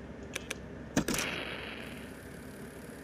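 Static hisses and crackles briefly.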